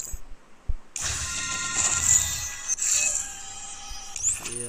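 A bright magical shimmer and whoosh sound as a game menu changes.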